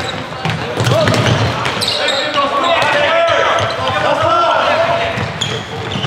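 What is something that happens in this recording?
Shoes squeak on a hard hall floor.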